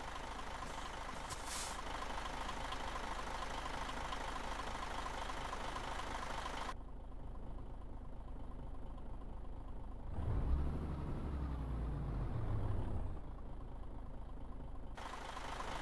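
A diesel truck engine idles with a low rumble.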